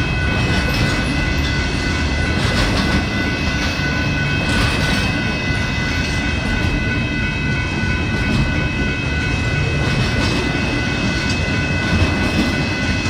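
A crossing bell rings rapidly and without pause.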